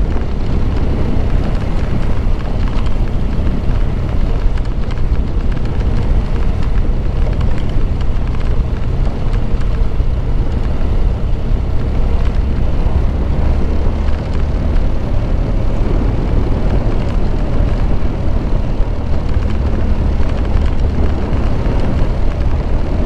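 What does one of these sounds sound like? Tyres crunch and rumble over a rough dirt track.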